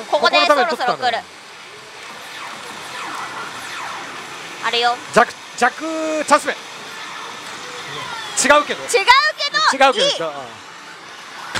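A slot machine plays electronic jingles and sound effects.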